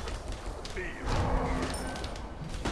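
Fiery blasts burst and roar.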